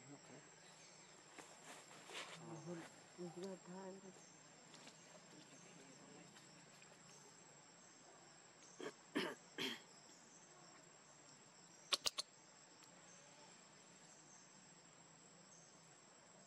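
A baby monkey suckles with soft, wet smacking sounds.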